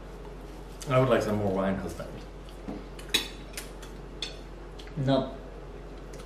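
Cutlery clinks on plates.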